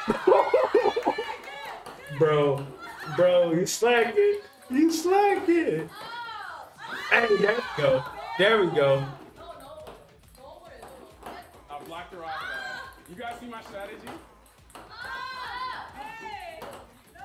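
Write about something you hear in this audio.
Young women laugh and cheer excitedly.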